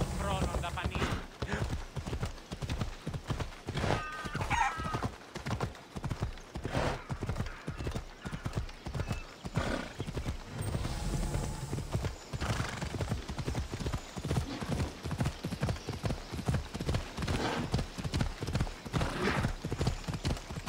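Horse hooves pound quickly on a dirt path.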